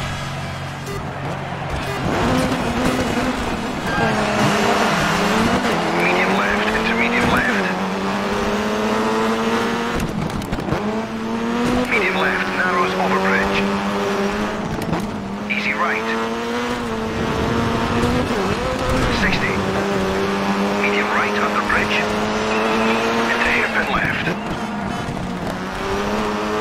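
A rally car engine revs hard and shifts gears as the car races.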